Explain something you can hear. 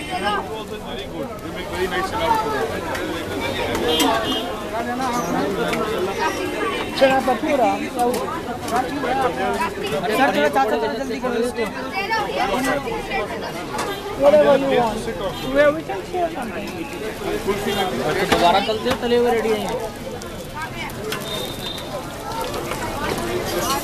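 Many men talk over one another in a busy, crowded room.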